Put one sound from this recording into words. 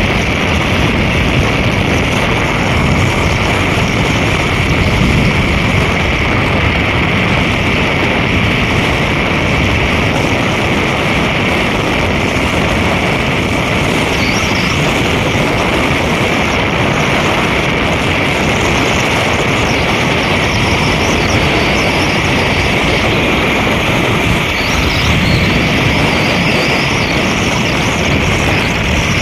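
A vehicle's engine and tyres hum steadily on a highway.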